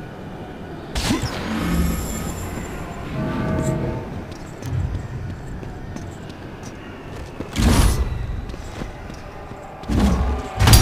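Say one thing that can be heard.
Heavy booming impacts thud.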